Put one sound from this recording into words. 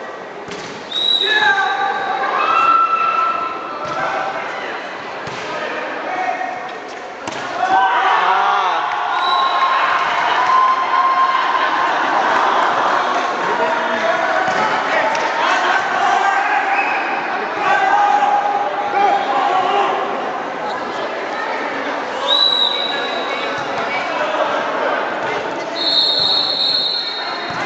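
A whistle blows sharply.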